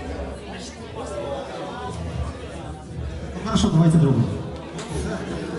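A band plays live music with electric guitars.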